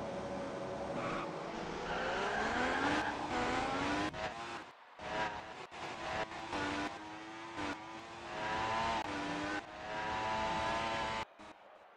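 A racing car engine revs up and climbs through the gears, rising in pitch again and again.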